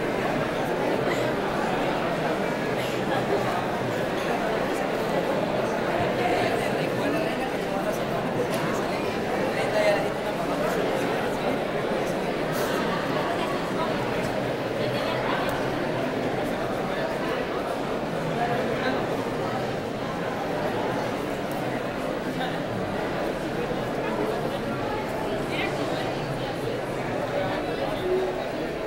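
Many people talk at once in a crowded hall.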